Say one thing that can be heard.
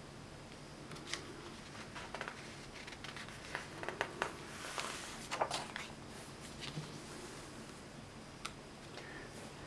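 Paper pages rustle and flap as a booklet's page is turned by hand.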